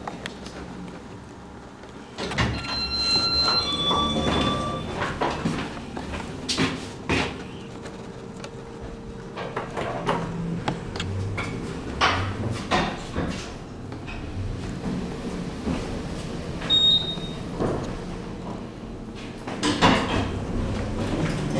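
Elevator doors slide open and shut.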